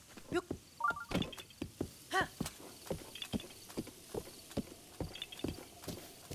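A horse's hooves gallop steadily on grass.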